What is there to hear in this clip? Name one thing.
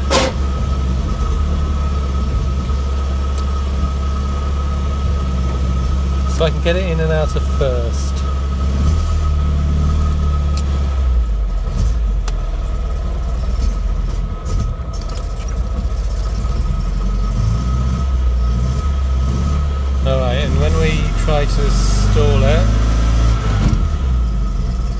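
An inline-four car engine runs, heard from inside the car.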